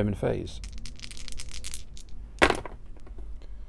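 Dice clatter and roll into a cardboard tray.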